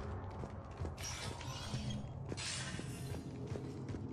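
A sliding door hisses open.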